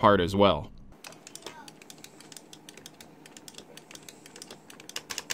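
A joystick clicks and rattles.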